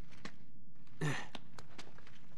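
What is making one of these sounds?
A heavy thud lands on wood.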